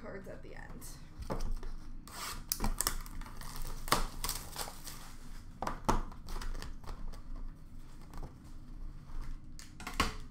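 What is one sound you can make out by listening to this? Hands rustle and crinkle a foil wrapper.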